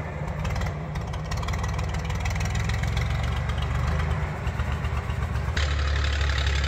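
A tractor engine drones steadily in the distance.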